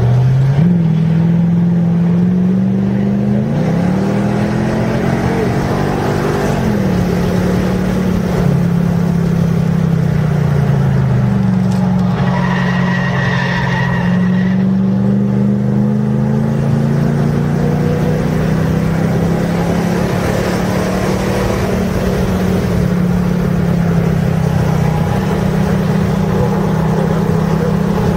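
Tyres hum and rumble on the track.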